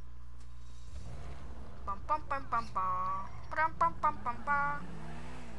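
A car engine revs and accelerates.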